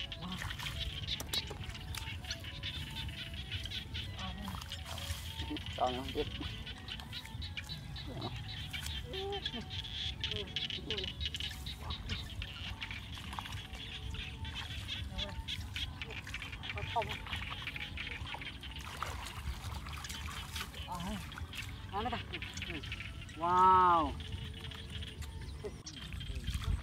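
Water splashes as feet wade through a shallow flooded field.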